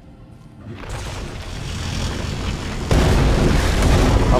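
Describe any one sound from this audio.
Lightning crackles and booms loudly.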